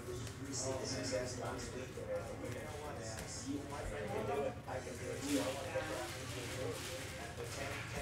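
Trading cards rustle and flick as they are shuffled through by hand.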